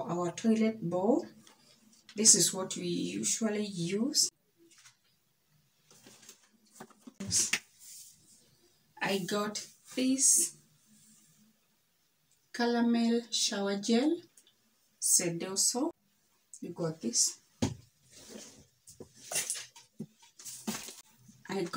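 A woman talks calmly and clearly close by, in short bursts with pauses.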